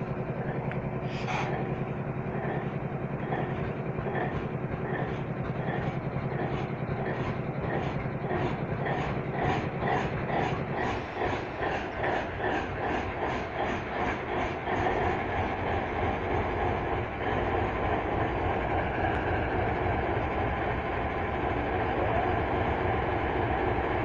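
A diesel locomotive engine rumbles steadily close by.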